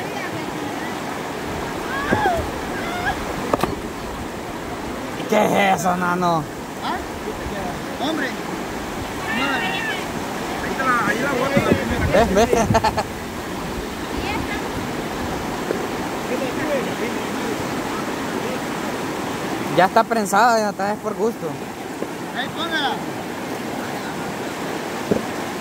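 A river rushes steadily over rocks outdoors.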